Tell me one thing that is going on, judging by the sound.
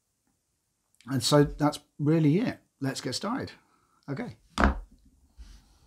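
A man speaks calmly and with animation, close to a microphone.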